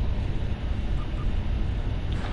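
Short soft beeps sound.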